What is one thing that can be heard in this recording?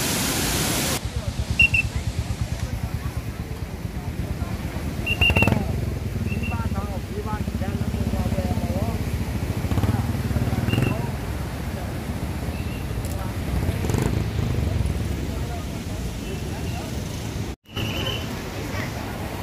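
A crowd of men and women talk among themselves nearby, outdoors.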